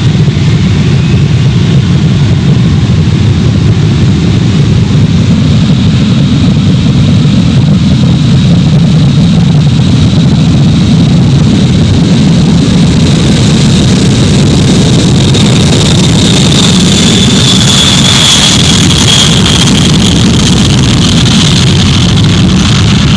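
Jet engines of a large aircraft roar loudly as it speeds down a runway.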